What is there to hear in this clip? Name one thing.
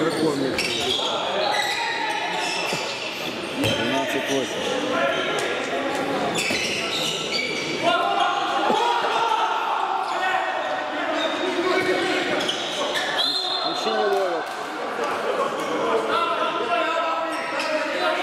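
A handball bounces on a wooden floor in an echoing hall.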